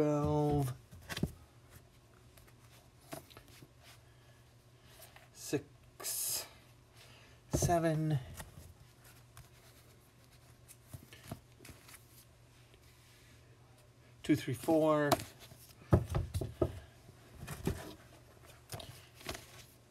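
Paperback books slide and thump on a wooden shelf.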